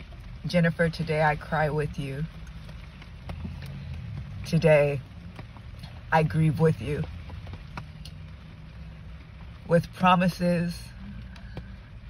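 Rain patters steadily on a car windshield.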